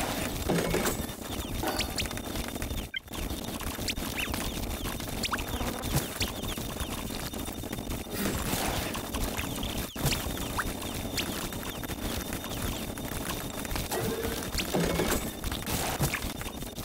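Rapid game sound effects of popping and blasting play without pause.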